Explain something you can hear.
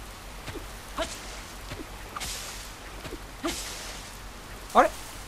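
Light rain patters steadily.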